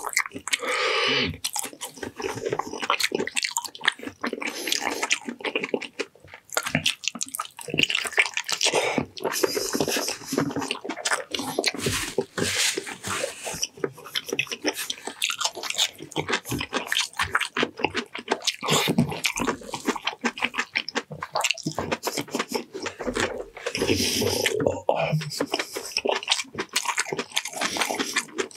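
A man chews food loudly and wetly close to a microphone.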